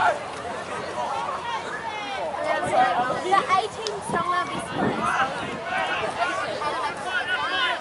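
A crowd of spectators shouts and cheers from the sidelines outdoors.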